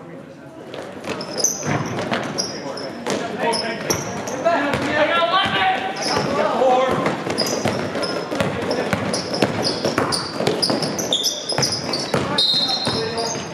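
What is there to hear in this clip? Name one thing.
A crowd of spectators cheers and chatters.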